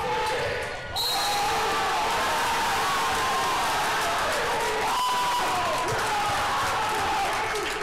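A crowd cheers and shouts loudly in an echoing gym.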